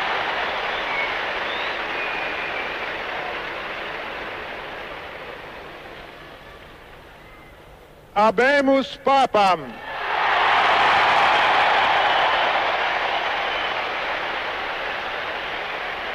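A huge crowd cheers and roars outdoors.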